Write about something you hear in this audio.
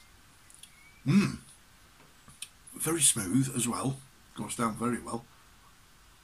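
A middle-aged man speaks calmly close to a microphone.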